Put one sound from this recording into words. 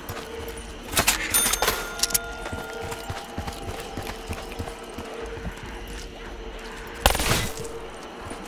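A gun fires short, loud bursts of shots.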